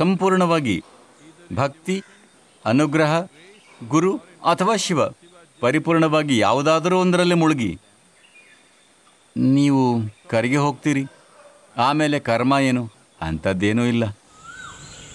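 An elderly man speaks calmly and expressively, close to a microphone.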